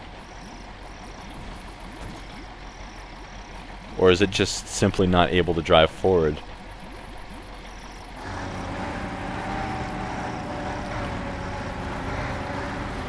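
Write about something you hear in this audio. A heavy truck engine rumbles steadily, growing louder partway through.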